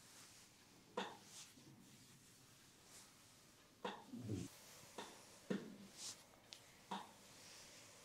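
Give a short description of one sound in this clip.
Fingers crack and snap against the skin in sharp taps.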